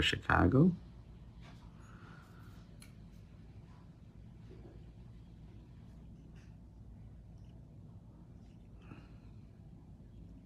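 A small brush softly taps and strokes against a fingernail.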